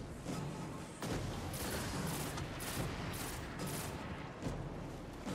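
Gunshots fire in quick bursts in a video game.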